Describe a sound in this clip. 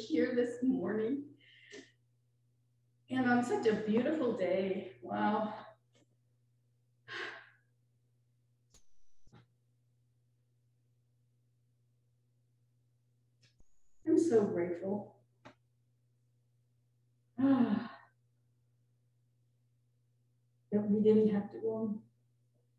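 An elderly woman speaks slowly and calmly into a microphone, with long pauses, in an echoing room.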